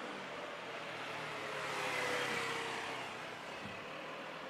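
A motorbike drives past.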